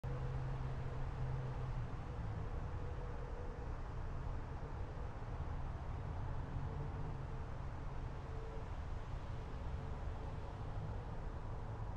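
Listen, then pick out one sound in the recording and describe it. Jet engines idle with a steady low rumble and whine.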